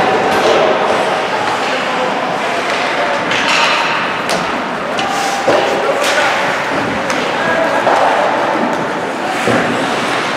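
Skates scrape and hiss across the ice in a large echoing hall.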